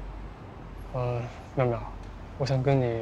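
A young man speaks quietly.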